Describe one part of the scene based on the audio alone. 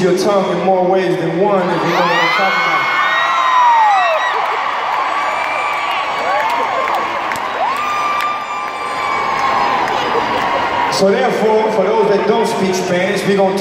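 A man sings into a microphone through loud concert speakers.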